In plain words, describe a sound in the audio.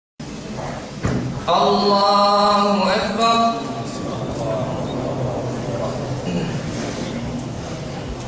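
A young man chants in a melodic voice through a microphone, echoing in a large hall.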